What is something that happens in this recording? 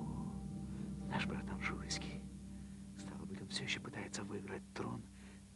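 A man speaks quietly and intensely, close by.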